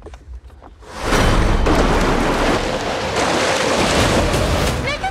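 An outboard motor roars loudly close by.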